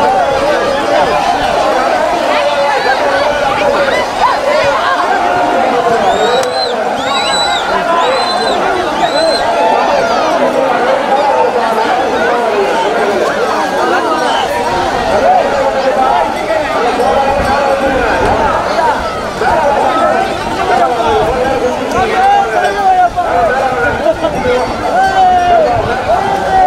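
A large crowd of men shouts and chants outdoors.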